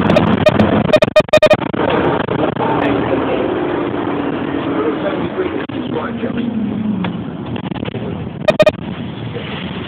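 Loud knocks and rattles come from inside the vehicle.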